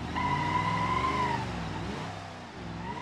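Tyres screech on tarmac.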